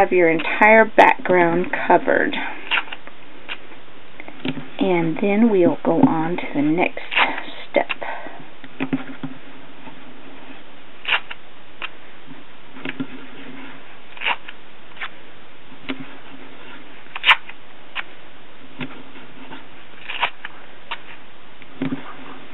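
Fingers rub and press tape down onto paper with soft scraping taps.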